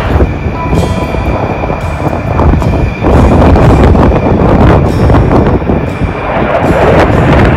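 A jet engine roars loudly overhead, growing louder as the jet passes.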